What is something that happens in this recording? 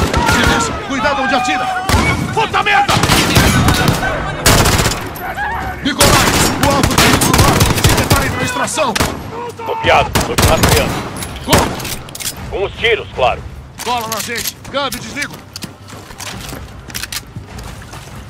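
Gunshots ring out in loud rapid bursts.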